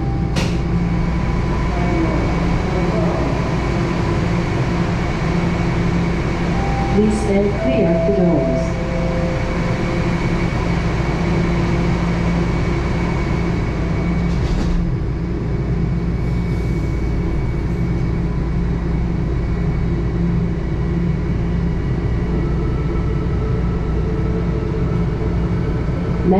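A train's motors hum steadily.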